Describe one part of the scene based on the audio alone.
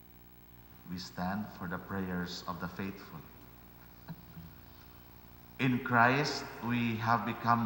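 A middle-aged man speaks slowly into a microphone in a large echoing hall.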